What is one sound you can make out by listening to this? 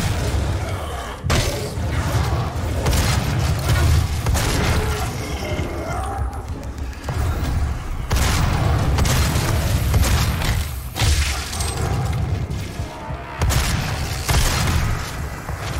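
Flesh tears with wet, crunching thuds.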